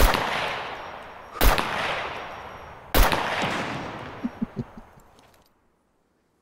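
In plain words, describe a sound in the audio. Rifle shots crack loudly and echo away into the distance.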